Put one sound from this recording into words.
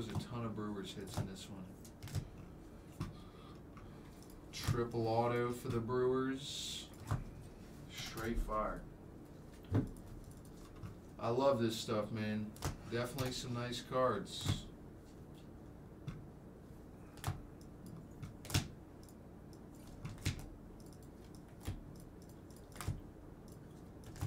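Plastic card cases click and tap as they are handled.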